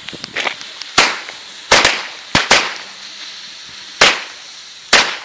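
Firecrackers bang loudly outdoors, one after another.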